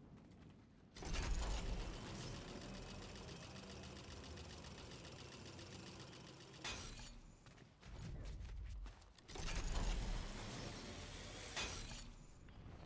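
A metal zipline whirs and rattles loudly.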